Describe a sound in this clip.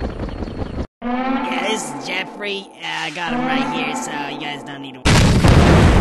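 A man speaks with animation over a radio.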